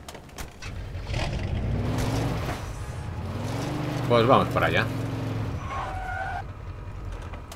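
A car engine starts and revs as a car drives off.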